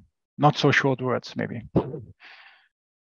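A middle-aged man speaks calmly through a headset microphone, as on an online call.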